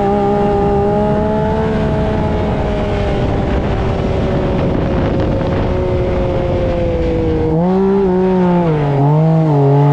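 A buggy engine roars steadily, then revs up and down.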